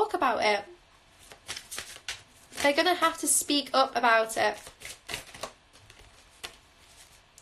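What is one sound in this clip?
Playing cards shuffle and slide in a young woman's hands.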